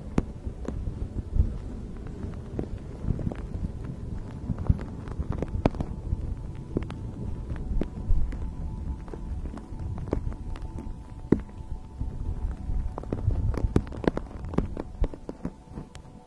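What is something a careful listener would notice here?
A fluffy fabric rustles against a microphone.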